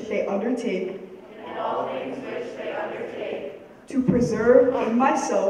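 A group of teenagers speak in a large hall.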